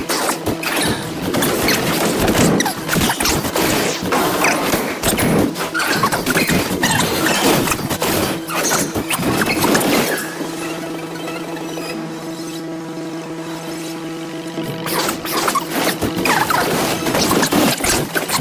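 Steady game music plays.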